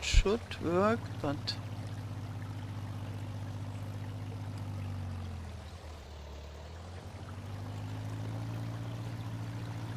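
A tractor engine chugs steadily, dropping and then picking up again.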